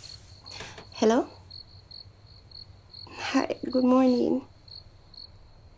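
A young woman speaks cheerfully into a phone.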